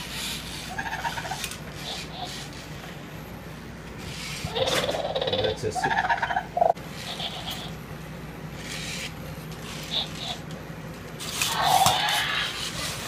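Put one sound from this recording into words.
A toy robot dinosaur's motors whir as it walks.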